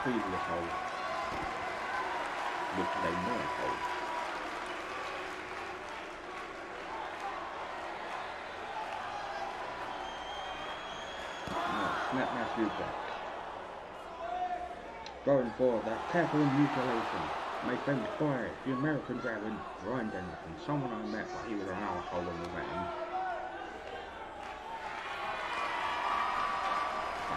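A crowd cheers and murmurs steadily.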